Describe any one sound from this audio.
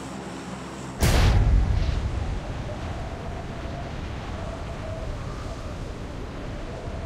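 Wind rushes loudly during a free fall.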